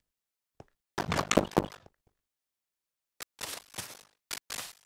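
A wooden door creaks open in a game.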